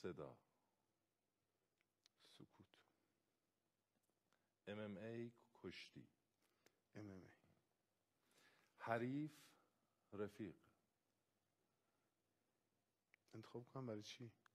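A young man answers in a deep voice, speaking calmly close to a microphone.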